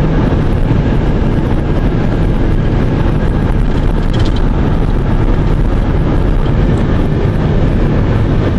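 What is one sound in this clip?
A car drives fast along a highway with a steady roar of tyres.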